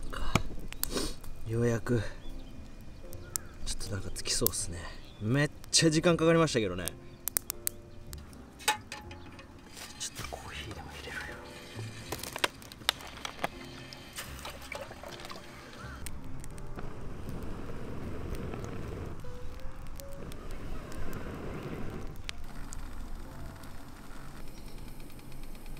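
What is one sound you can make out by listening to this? A small wood fire crackles and pops.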